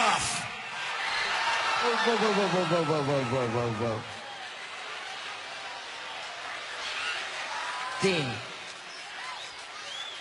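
A man speaks through a microphone, heard echoing in a large arena.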